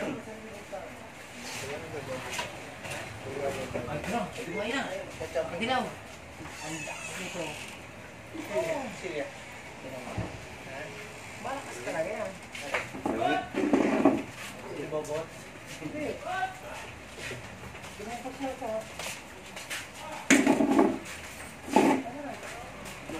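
Men talk casually nearby.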